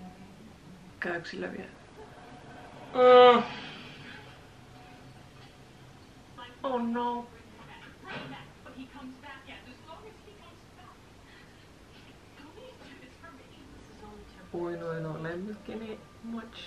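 A young woman gasps and whimpers close by.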